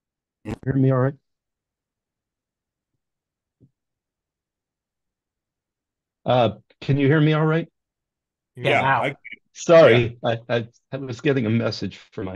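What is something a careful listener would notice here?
A middle-aged man talks with animation over an online call.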